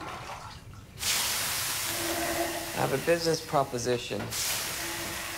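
Water hisses into loud steam on hot sauna stones.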